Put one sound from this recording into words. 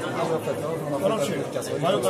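Dice rattle in cupped hands.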